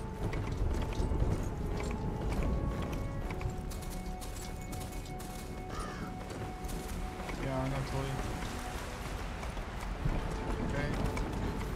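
A horse gallops with thudding hooves.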